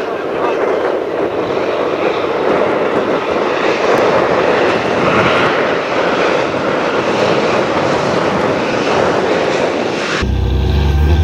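Tyres crunch and spray gravel and sand.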